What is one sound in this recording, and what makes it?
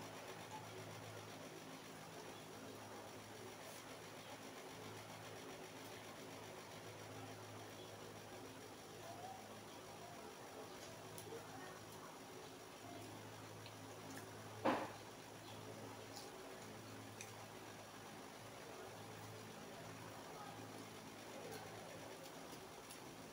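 A plastic spoon scrapes and taps against food.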